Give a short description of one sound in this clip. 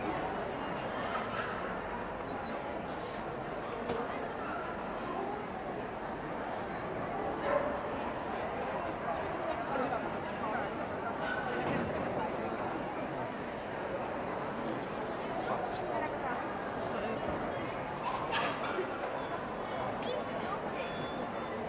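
Dogs' claws click on a hard floor.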